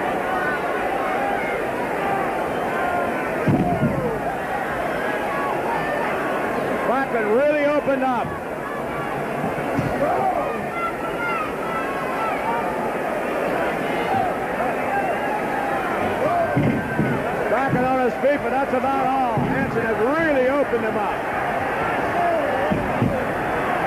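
A large indoor crowd murmurs and shouts throughout.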